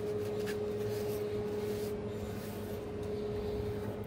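A metal container scrapes and clinks against a steel counter.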